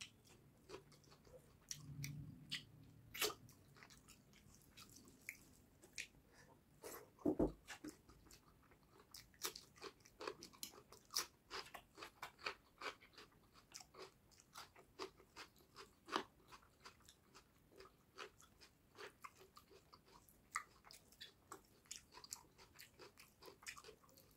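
A man chews food loudly and wetly, close to a microphone.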